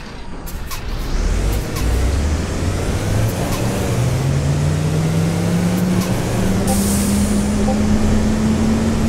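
A bus engine revs up and rises in pitch as the bus pulls away.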